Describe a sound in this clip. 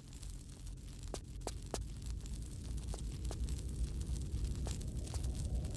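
Footsteps patter quickly on a stone floor.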